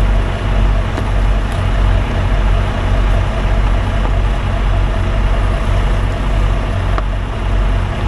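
Objects clatter softly as they are handled.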